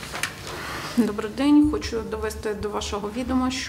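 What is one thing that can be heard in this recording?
A woman speaks into a microphone, heard through loudspeakers in a hall.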